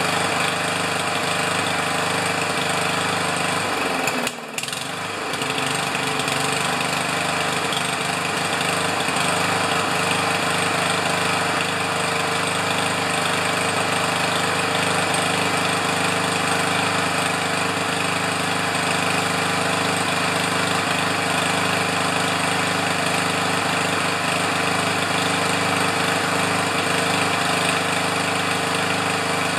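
A small petrol lawn mower engine runs with a loud, steady roar close by.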